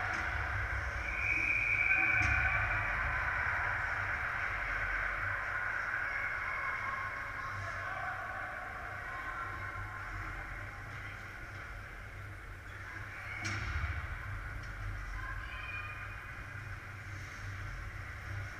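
Young players shout and call out across the rink.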